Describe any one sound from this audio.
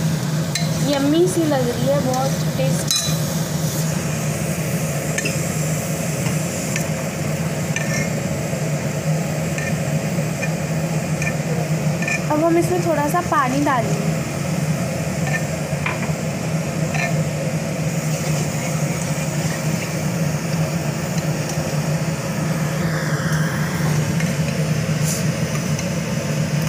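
A metal spoon scrapes and stirs inside a metal pot.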